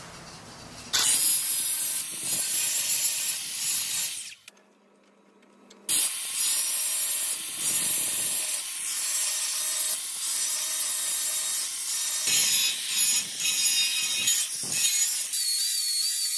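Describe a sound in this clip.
An angle grinder cuts through a steel rod with a loud, harsh screech.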